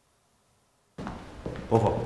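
A man's feet thud and shuffle on a hard floor as he moves quickly.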